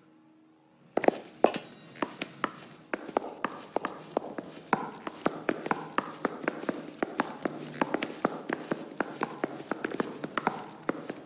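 Hard shoes step steadily across a floor.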